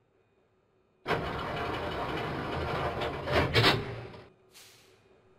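A subway train rumbles and whines as it pulls away.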